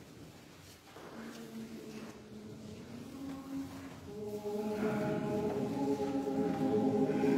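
A men's choir sings together in a large echoing hall.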